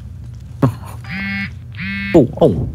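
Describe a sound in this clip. A mobile phone chimes with a message alert.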